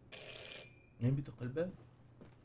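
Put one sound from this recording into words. A young man speaks briefly into a close microphone.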